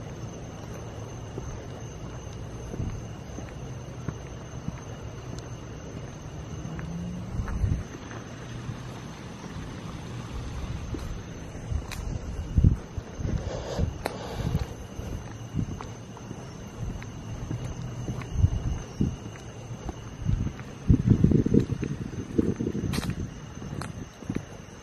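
Footsteps walk on a stone path outdoors.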